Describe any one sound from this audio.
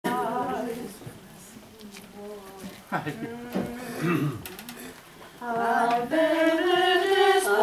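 A choir of older women and men sings together.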